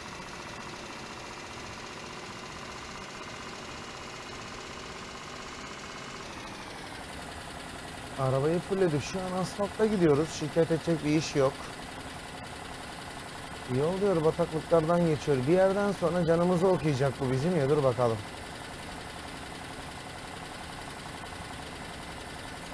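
A bus engine hums steadily.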